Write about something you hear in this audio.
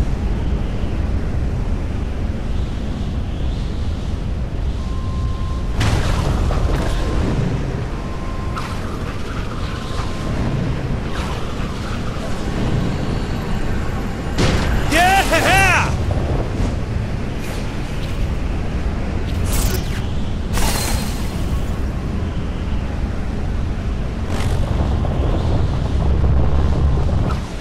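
Wind rushes steadily and loudly.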